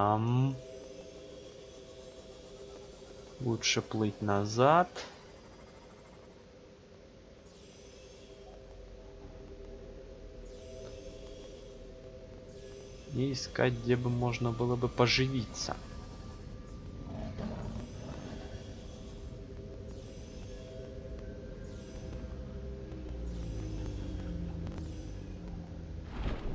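A submarine's engine hums steadily underwater.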